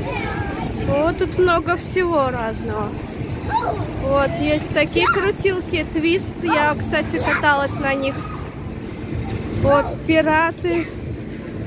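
A child talks loudly and excitedly nearby.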